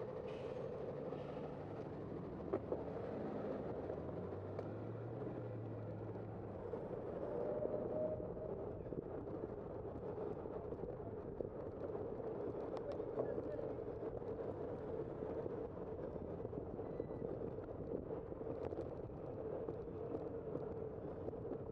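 A car engine hums steadily as it drives along a city street.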